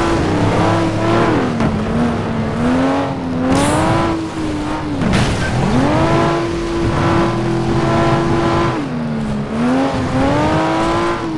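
Tyres skid and hiss over ice and snow.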